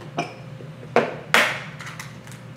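An egg cracks against a bowl.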